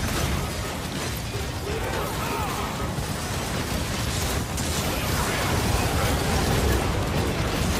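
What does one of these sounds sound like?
Magic blasts and impacts crash in a game.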